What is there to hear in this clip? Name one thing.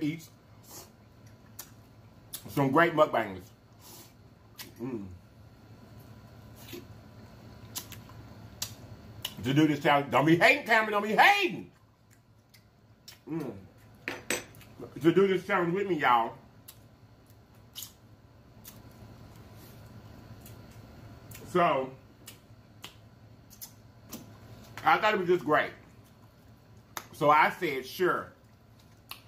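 A man chews and smacks his lips.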